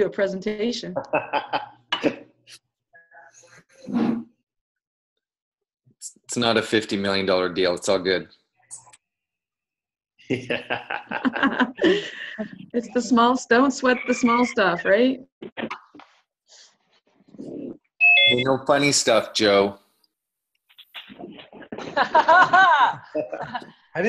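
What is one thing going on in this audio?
Women laugh over an online call.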